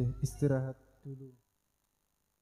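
A young woman speaks briefly nearby.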